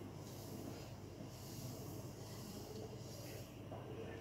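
Sugar pours into a pot of liquid with a soft hiss.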